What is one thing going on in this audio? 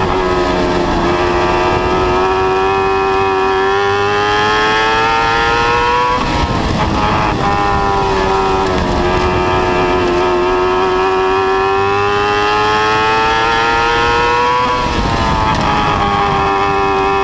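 A race car engine roars loudly, rising in pitch and dropping as it lets off before the turns.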